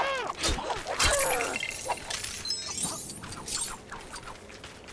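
Small studs scatter and jingle as they are collected.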